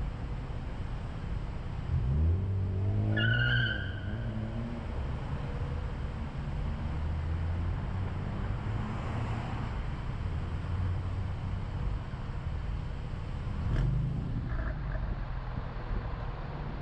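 A car engine idles in slow traffic with a low rumble.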